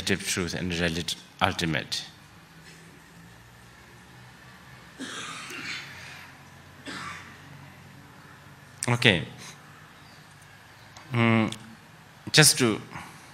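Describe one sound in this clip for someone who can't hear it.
A man speaks calmly through a microphone, pausing often.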